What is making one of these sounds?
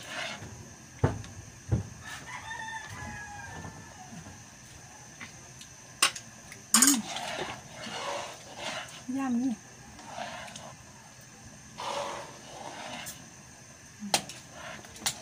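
A ladle scrapes and clinks against a metal pot.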